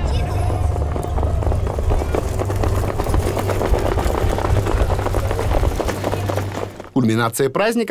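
Horses' hooves pound on a dirt track.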